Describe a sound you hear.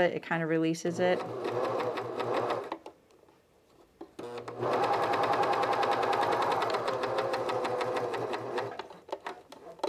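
A sewing machine runs with a steady whirr.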